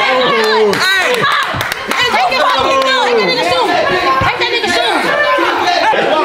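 A young man laughs loudly up close.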